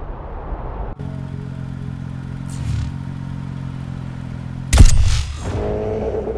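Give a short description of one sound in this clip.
A sports car engine idles.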